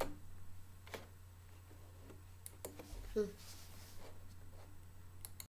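A man speaks briefly and quietly, close by.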